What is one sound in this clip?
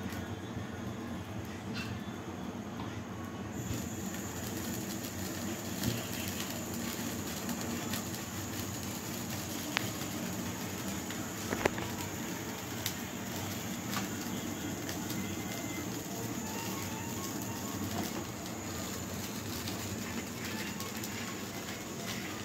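Batter sizzles in a frying pan.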